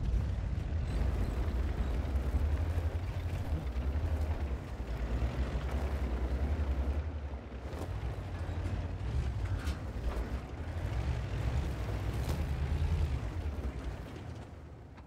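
A tank engine rumbles in a video game.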